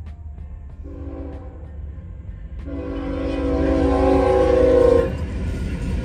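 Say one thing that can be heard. A train horn blares loudly, then stops.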